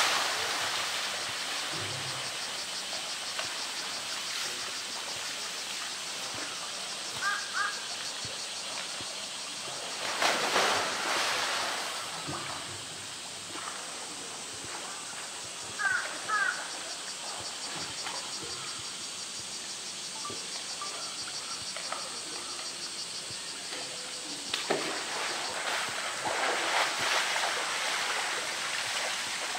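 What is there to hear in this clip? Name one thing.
Water drips and patters from a bear's wet fur.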